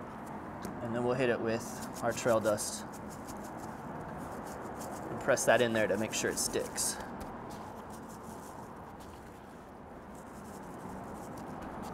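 Gloved hands rub and pat a piece of meat.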